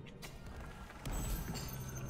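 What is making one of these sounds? Blows and magic blasts clash in a fight.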